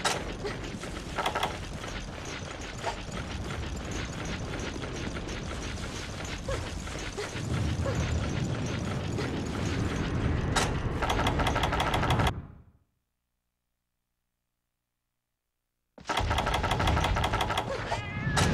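Loud game music and battle sounds play, stop for a few seconds, then return.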